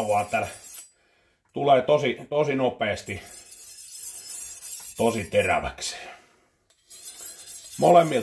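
A knife scrapes against a sharpening steel.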